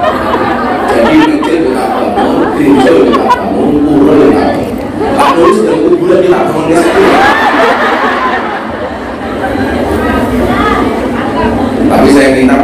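A man preaches with animation through a loudspeaker in a large echoing hall.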